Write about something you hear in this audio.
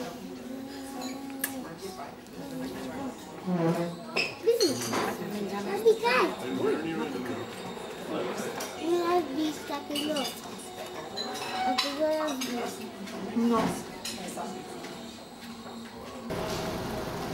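A little girl babbles and squeals.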